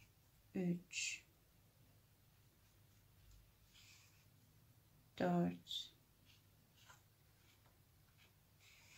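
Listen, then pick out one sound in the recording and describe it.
Fingers push and rustle soft stuffing into a knitted piece.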